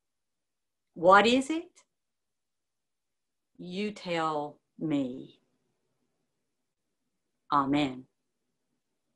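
An elderly woman speaks calmly in short phrases over an online call.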